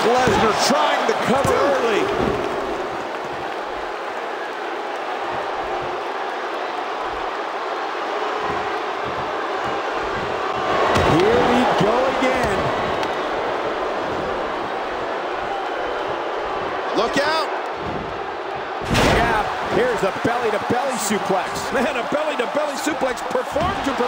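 A large crowd cheers and chants in a big arena.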